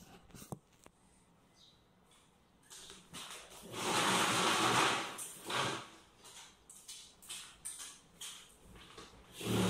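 Dishes and objects clink and clatter on a table.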